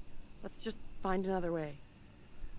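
A young woman speaks quietly and calmly.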